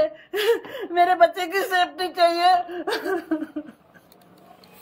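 An elderly woman wails and sobs loudly, close by.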